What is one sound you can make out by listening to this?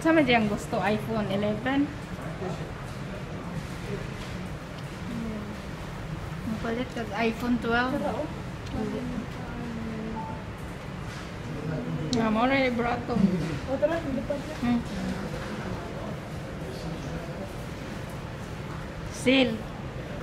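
A woman talks in a low voice close by.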